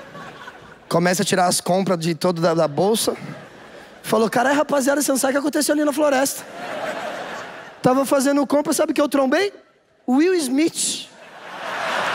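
A man talks with animation into a microphone in a large hall.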